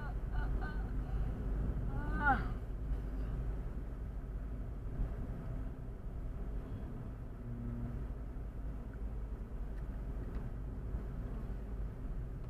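Tyres roll steadily on asphalt.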